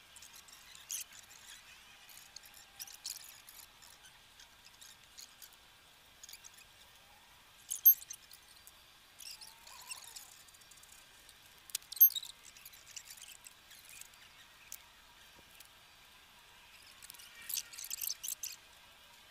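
Clippers snip sharply at branches.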